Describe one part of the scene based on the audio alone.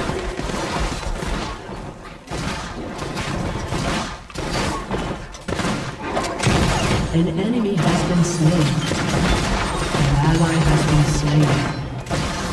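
Fantasy battle sound effects clash, crackle and burst rapidly.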